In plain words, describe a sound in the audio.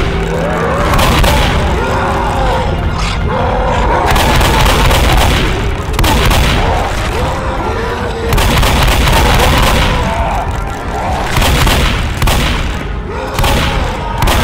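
A shotgun fires loud, booming blasts again and again.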